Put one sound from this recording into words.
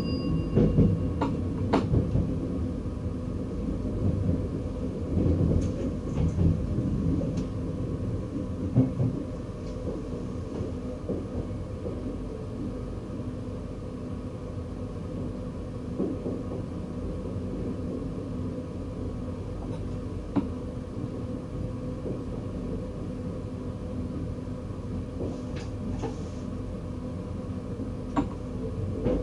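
A train rumbles steadily along the tracks from inside the cab.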